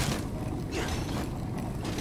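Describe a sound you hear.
A blade swishes through the air with a sharp slash.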